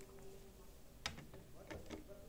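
A phone knocks against a plastic stand.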